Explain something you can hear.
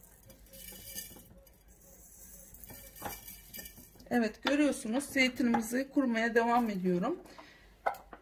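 Olives clink against the glass as a hand drops them into a jar.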